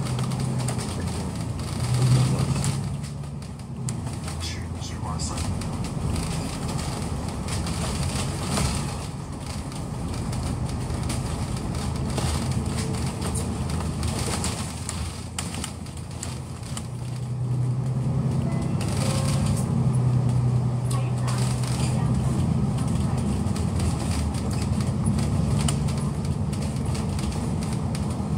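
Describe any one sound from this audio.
A vehicle engine hums steadily as it drives along a road.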